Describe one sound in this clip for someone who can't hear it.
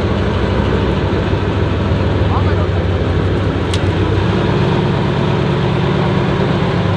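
A truck's diesel engine roars and rumbles loudly as it climbs.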